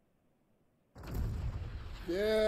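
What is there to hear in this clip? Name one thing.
A large cannon fires with a loud boom.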